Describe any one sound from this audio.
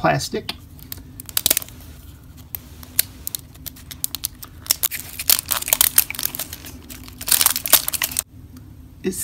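A small plastic container crinkles and clicks as it is turned and picked at by hand.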